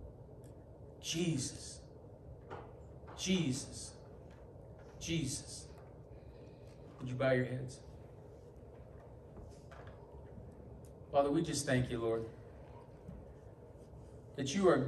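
A man speaks slowly and deliberately into a microphone, in short phrases with long pauses.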